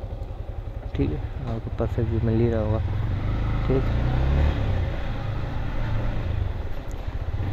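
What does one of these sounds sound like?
A motorcycle engine revs and pulls away, growing louder.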